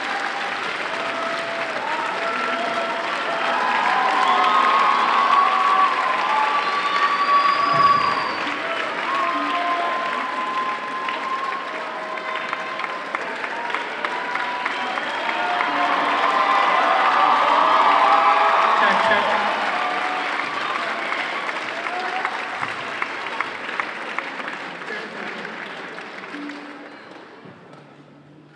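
An audience applauds loudly in a large hall, then the clapping fades away.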